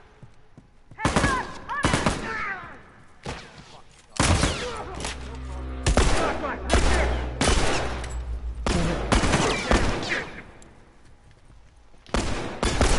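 Gunshots ring out in loud, sharp bursts.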